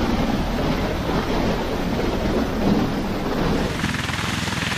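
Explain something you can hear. Aircraft engines and rotors roar loudly close by.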